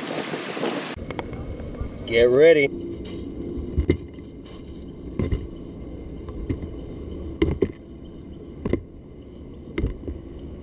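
Hands knock against a plastic fish trap underwater.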